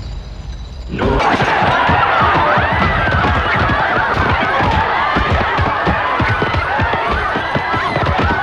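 A large crowd shouts and screams in uproar.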